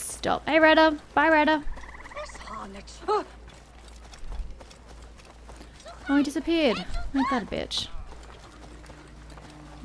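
Quick footsteps run over a dirt path.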